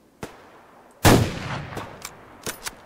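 A rifle fires a loud shot that echoes.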